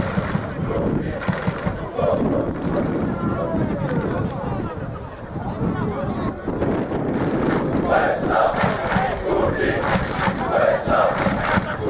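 A large crowd of fans chants and sings loudly outdoors.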